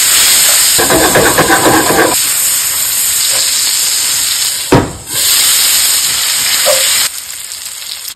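Food sizzles loudly in a hot frying pan.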